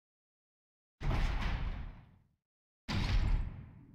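A heavy metal door rumbles open.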